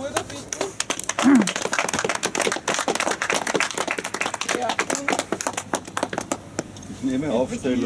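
A crowd claps outdoors.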